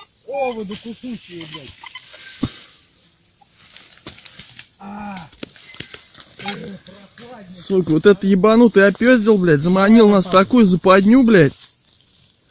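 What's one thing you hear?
A man speaks close by, then calls out loudly in long drawn-out tones.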